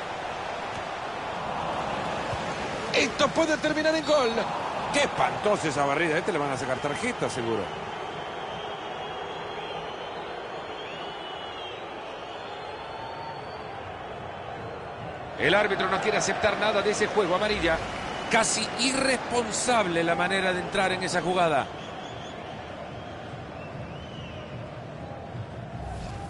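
A large stadium crowd murmurs and roars steadily in the background.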